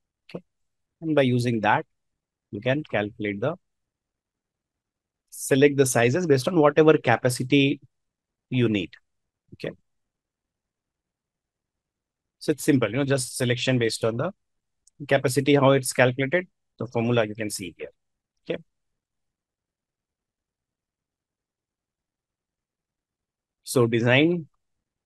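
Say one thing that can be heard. A man speaks calmly in short phrases through a microphone, as if on an online call.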